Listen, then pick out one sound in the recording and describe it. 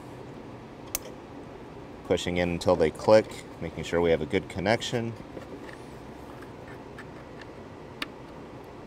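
A plastic plug clicks into place.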